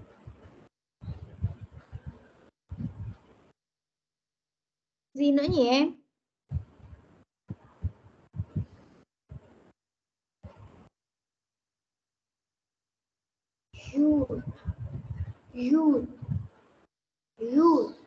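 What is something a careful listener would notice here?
A young child speaks in short bursts through an online call.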